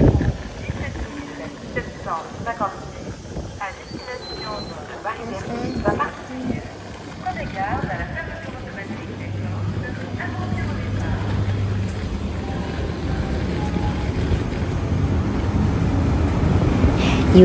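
A train rolls slowly past close by, its rumble growing louder.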